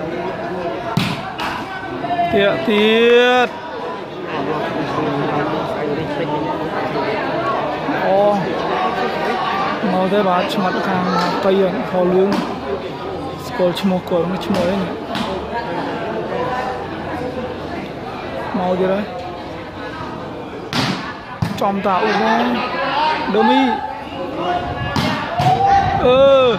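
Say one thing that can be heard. A ball is kicked with dull thuds.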